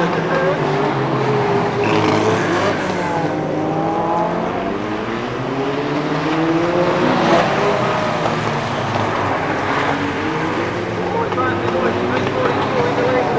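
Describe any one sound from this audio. Racing car engines roar and rev loudly around a track.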